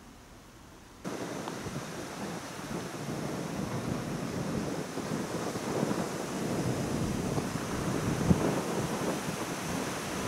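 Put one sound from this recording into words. Wind blows strongly outdoors, rumbling against the microphone.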